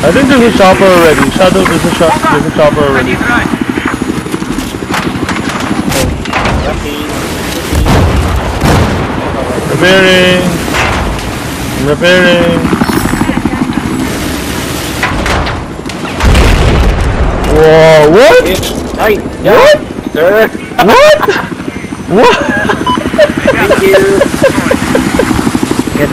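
A helicopter rotor thumps steadily.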